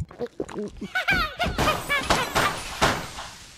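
Playful game sound effects chime and sparkle.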